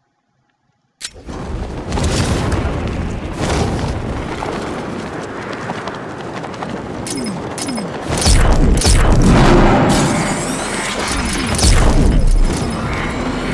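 Wind rushes loudly past in a game.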